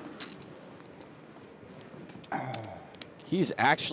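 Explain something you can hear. Poker chips click together on a table.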